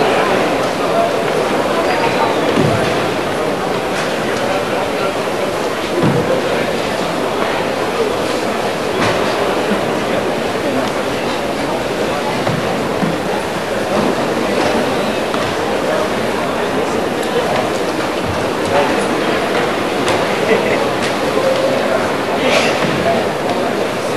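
Bare feet stamp and slide on a wooden floor.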